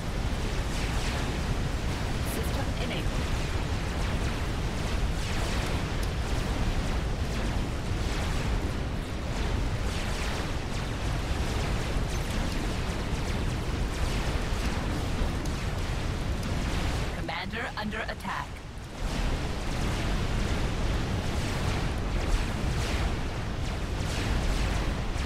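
Weapons fire and explosions rumble steadily in a battle.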